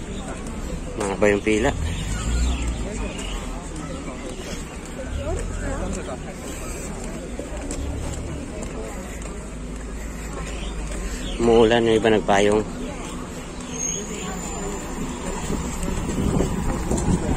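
A crowd of people murmurs nearby outdoors.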